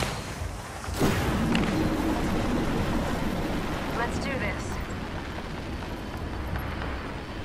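Wind rushes steadily past during a fast glide through the air.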